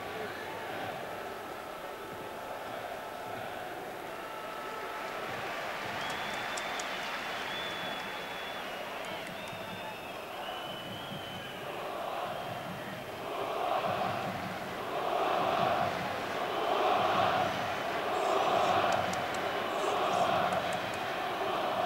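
A large stadium crowd murmurs steadily outdoors.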